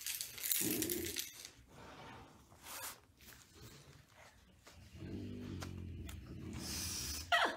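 A puppy sniffs and snuffles at a tray.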